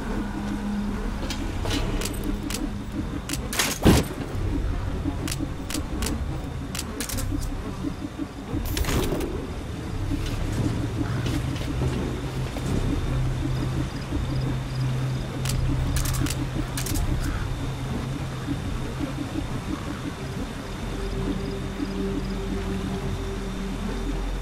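Soft footsteps shuffle along slowly.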